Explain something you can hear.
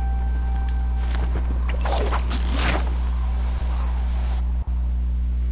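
A rushing whoosh sweeps past as a climber slides down a rope.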